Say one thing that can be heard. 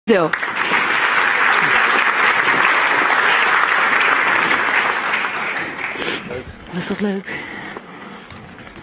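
A large audience applauds in an echoing hall, then the applause fades.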